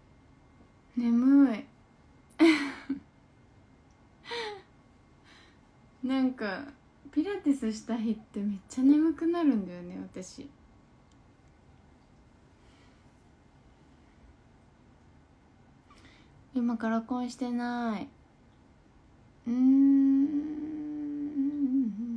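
A young woman talks softly and cheerfully, close to a microphone.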